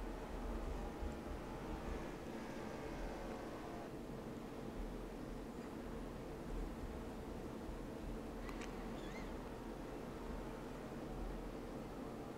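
Tyres screech as a race car skids.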